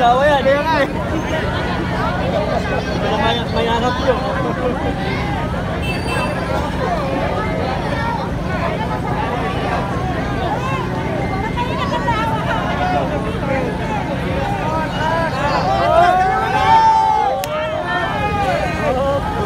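A dense crowd of men and women chatters and shouts loudly outdoors.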